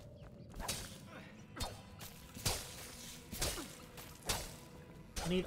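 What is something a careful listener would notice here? A blade slashes and strikes with sharp thuds.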